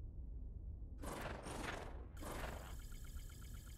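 A game's interface whooshes twice as a results panel opens.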